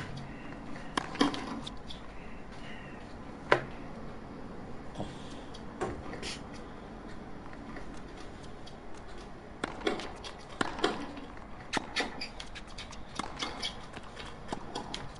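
A tennis ball is struck back and forth with sharp pops of a racket.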